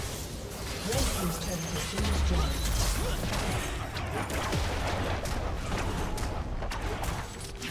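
Game characters clash with sharp hits and impacts.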